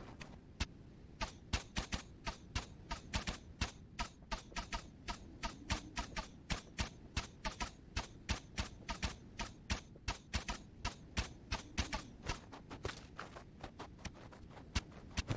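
Sharp weapon strikes land in quick succession.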